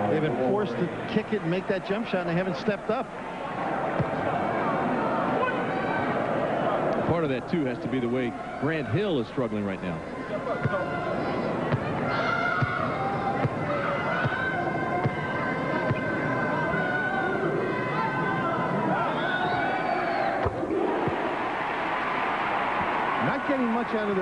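A large crowd murmurs and chatters in an echoing arena.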